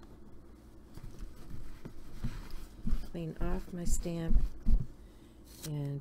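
Hands rub and pat a cloth against a hard surface with soft thumps.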